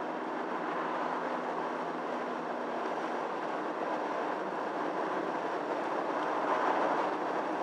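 Tyres roll on wet tarmac with a constant rushing noise.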